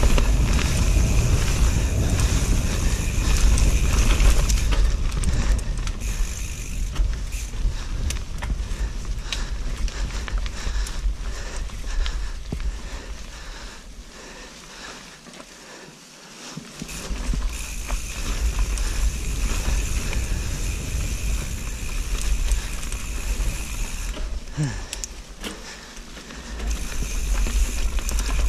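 A bicycle frame and chain rattle over bumps.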